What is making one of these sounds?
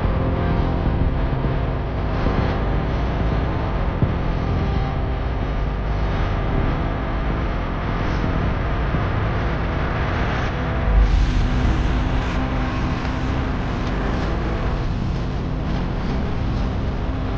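Wind rushes steadily past a moving vehicle outdoors.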